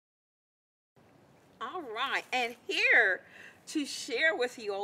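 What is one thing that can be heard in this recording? A woman speaks warmly and clearly, close by.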